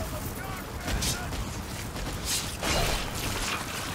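A sword slashes through the air with a swishing sound.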